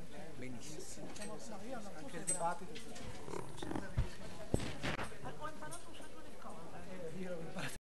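A crowd of men and women chat quietly in a room with some echo.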